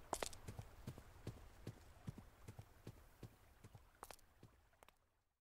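Footsteps crunch steadily over grass.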